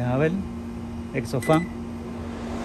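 Microwave buttons beep as they are pressed.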